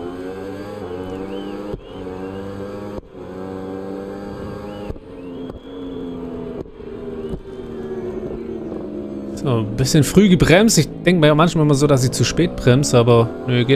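A motorcycle engine roars at high revs, shifting pitch as the bike changes gears.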